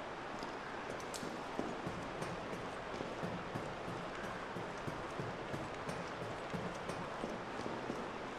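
Footsteps clang on a metal grating at a steady walking pace.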